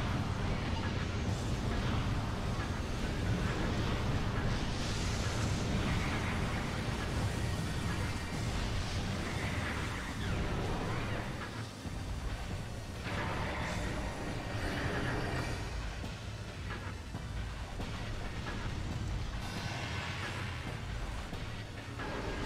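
Rapid blaster shots fire again and again.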